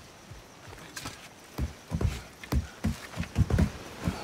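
Heavy thumps knock against wood.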